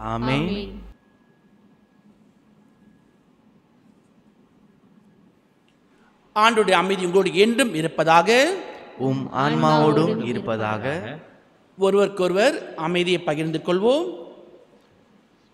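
A man chants prayers through a microphone in a reverberant hall.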